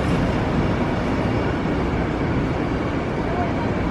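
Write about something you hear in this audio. A steel roller coaster train rumbles along its track.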